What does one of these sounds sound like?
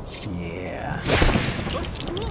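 A magic spell fires with a crackling zap.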